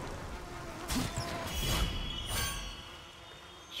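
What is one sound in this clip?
A bright magical chime rings out.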